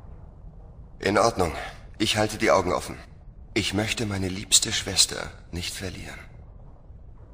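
A man speaks calmly and clearly, close up.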